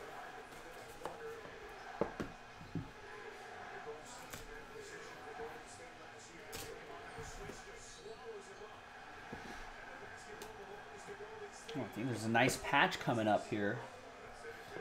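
Cardboard boxes tap and slide against each other.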